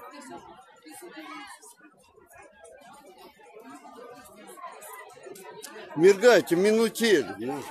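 Several women chat in a lively crowd outdoors.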